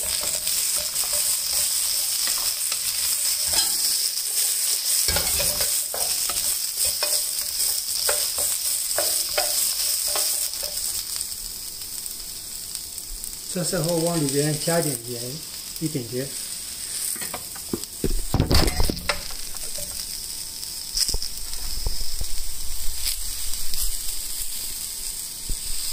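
Green beans sizzle steadily in a hot pan.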